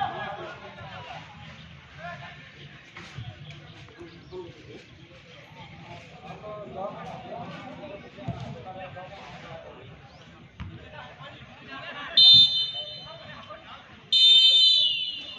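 A crowd of young men chatters and calls out nearby outdoors.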